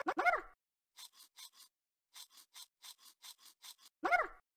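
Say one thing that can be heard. An electric toothbrush buzzes.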